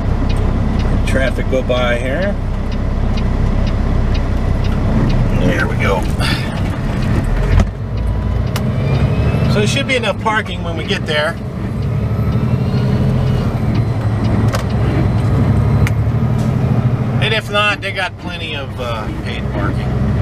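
A middle-aged man talks calmly inside a truck cab.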